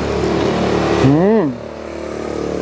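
A young man hums with pleasure.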